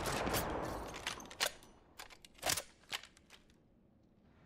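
A rifle clicks and clacks as it is reloaded.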